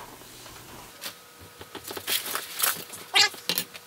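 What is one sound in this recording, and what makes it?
Cardboard and packing paper rustle and crinkle.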